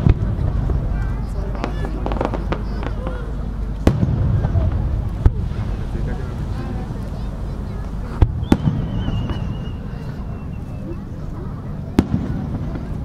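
Fireworks burst with loud booms that echo in the open air.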